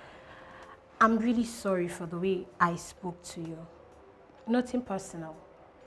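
A woman speaks calmly and with feeling, close by.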